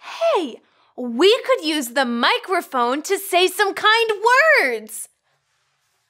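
A young woman sings a short, lively melody.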